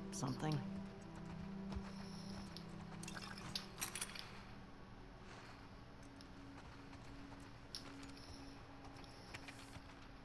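Footsteps shuffle slowly across a hard floor.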